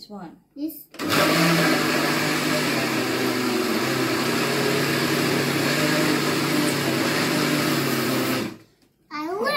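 A blender whirs loudly and steadily.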